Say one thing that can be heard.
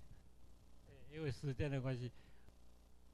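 A man nearby speaks up loudly and briefly.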